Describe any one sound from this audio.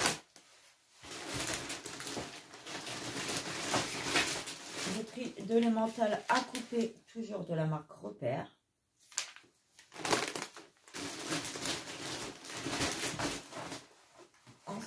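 Plastic packaging rustles as it is handled.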